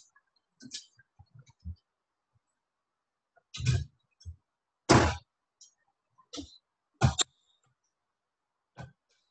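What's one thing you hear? A gas stove igniter clicks several times.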